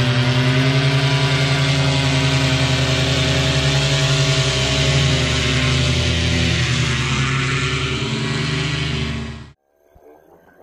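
Paramotor engines drone steadily overhead.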